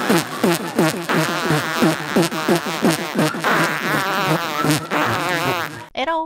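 A man shouts excitedly into a microphone.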